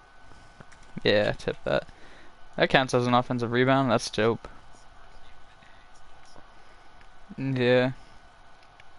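A man speaks in short animated bursts through a headset microphone.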